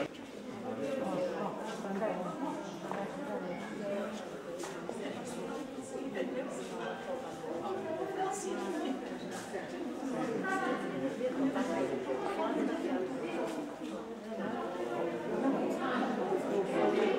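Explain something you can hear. Several people talk at once in a murmur of overlapping voices, close by.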